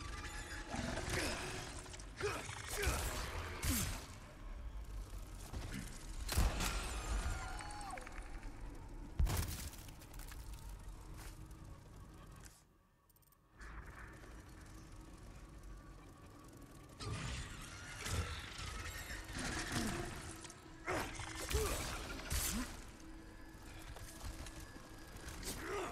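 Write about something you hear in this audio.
A monstrous creature screeches and growls.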